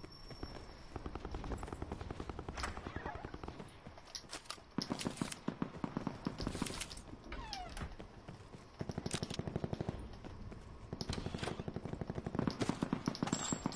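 Footsteps patter quickly on hard ground and floors.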